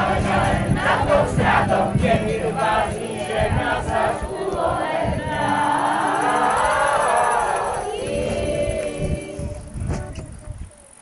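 A young girl speaks loudly and with animation, outdoors.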